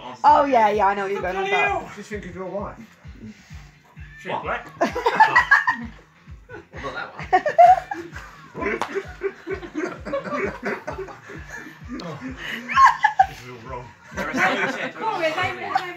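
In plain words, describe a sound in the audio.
Men laugh heartily close by.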